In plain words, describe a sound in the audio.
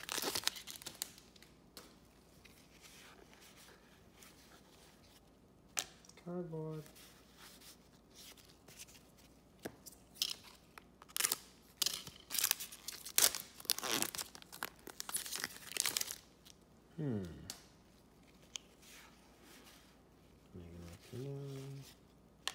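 Trading cards rustle and slide as they are flipped through.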